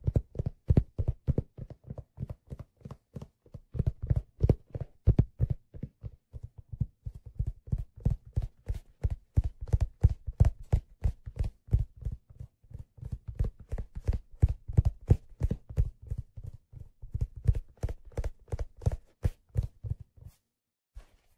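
Fingers tap rapidly on a hollow leather case close to a microphone.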